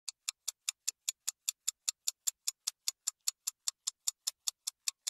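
A clock ticks rapidly and evenly.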